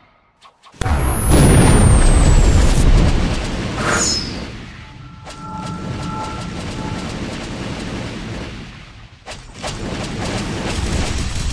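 Magic blasts roar and crackle loudly.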